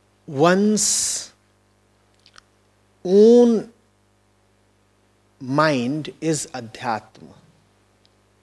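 A man speaks calmly into a microphone, close by, with pauses between phrases.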